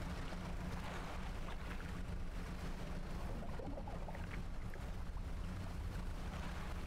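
Water splashes and churns behind a moving boat.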